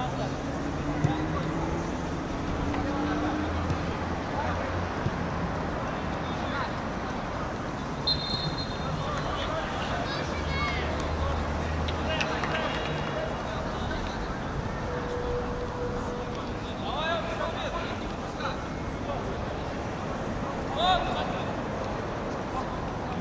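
Outdoor crowd murmur runs steadily in the background.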